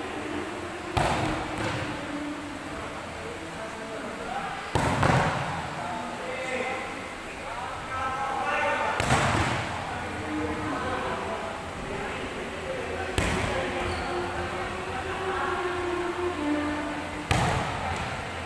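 A ball is kicked hard with sharp thumps that echo around a large hall.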